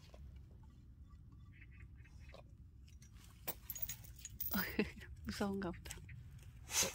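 A metal chain clinks and rattles as a dog moves.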